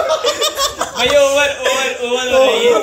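A young man laughs hard, close by.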